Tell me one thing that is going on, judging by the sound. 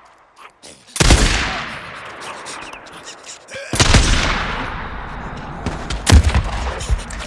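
A rifle fires loud shots that echo away.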